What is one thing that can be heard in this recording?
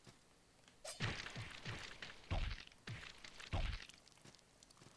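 Sword slashes and heavy blows land in quick bursts.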